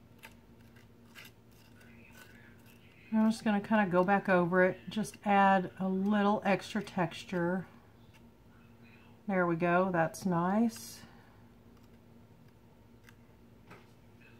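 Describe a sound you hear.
A palette knife scrapes softly across a textured surface.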